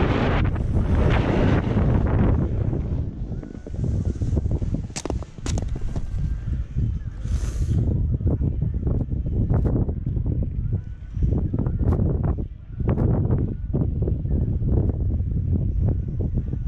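Skis or a snowboard scrape and hiss over the snow.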